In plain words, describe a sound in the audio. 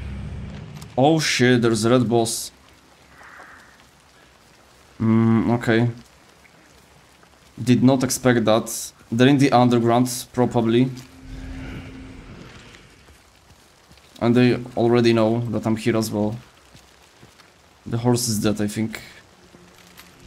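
A young man talks with animation into a close microphone, in bursts with pauses.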